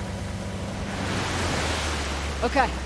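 Water splashes as a vehicle drives through a stream.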